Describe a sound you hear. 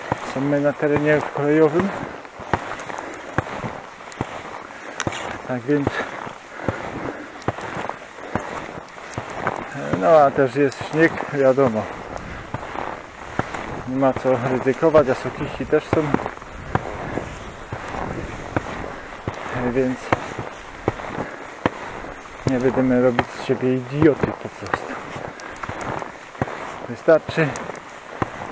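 Footsteps crunch steadily through deep snow.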